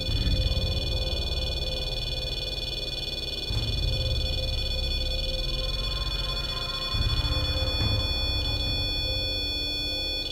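An electrical machine hums steadily.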